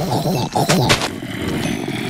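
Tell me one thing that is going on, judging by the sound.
A block cracks and breaks with a short crunch.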